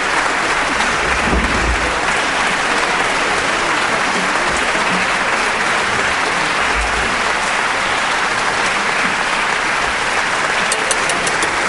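A large audience applauds loudly and steadily in an echoing hall.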